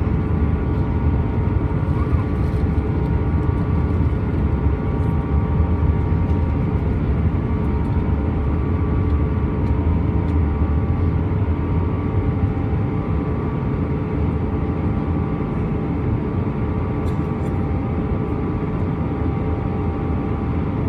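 Jet engines roar steadily with a low, constant drone from inside a cabin.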